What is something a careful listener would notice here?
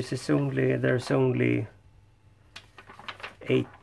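Paper pages rustle and crinkle as they are turned.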